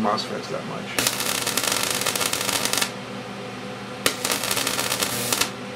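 Electric sparks buzz and crackle loudly in short bursts.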